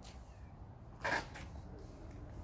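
A match strikes and flares up.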